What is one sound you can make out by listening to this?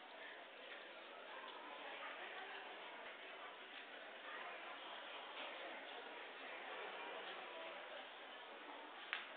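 A crowd of adults murmurs in a large echoing hall.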